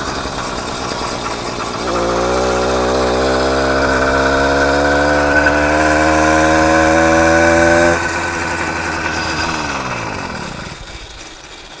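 A small motorized bike engine buzzes, rising in pitch as it speeds up, then winds down.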